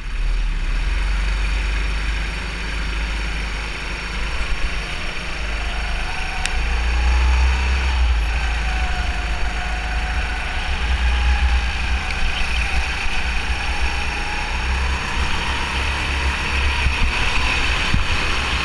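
A go-kart engine roars up close, rising and falling in pitch as it speeds up and slows.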